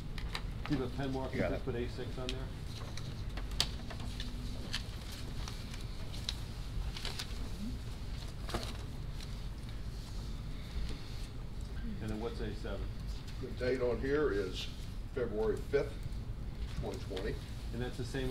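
A man speaks calmly into a microphone in a large room.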